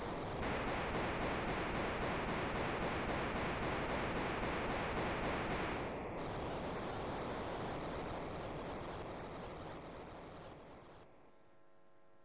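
A fiery blast roars steadily, then slowly fades away.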